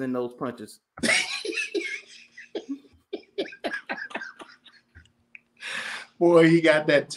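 A man laughs through an online call.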